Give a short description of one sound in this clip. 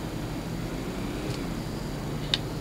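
A man speaks quietly into a nearby microphone.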